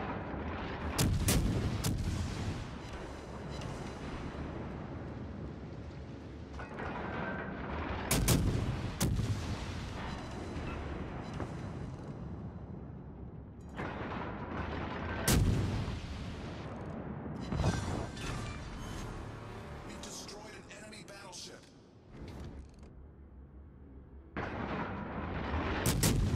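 Heavy naval guns fire in loud booming blasts.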